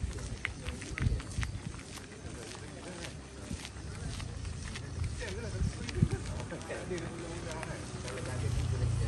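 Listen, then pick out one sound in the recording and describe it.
Footsteps scuff steadily on a paved road.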